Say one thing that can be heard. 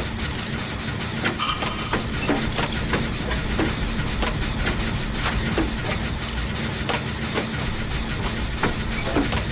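A low engine hum drones steadily.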